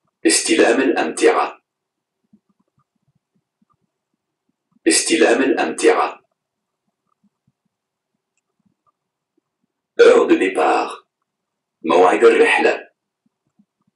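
A man speaks close to the microphone in short phrases with pauses.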